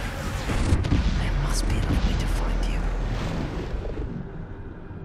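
A huge creature growls with a deep, heavy rumble.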